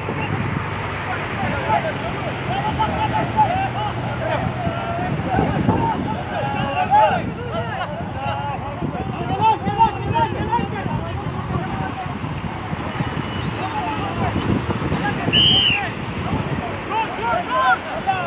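A group of men shout and chant together outdoors.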